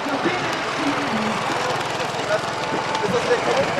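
Runners' footsteps patter on a paved road.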